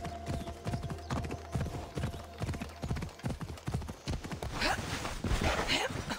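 Hooves gallop steadily over hard ground.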